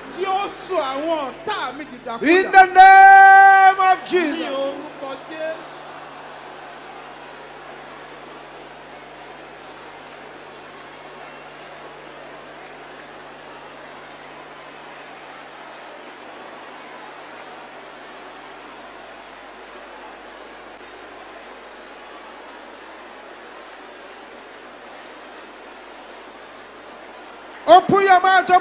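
A large crowd prays aloud together.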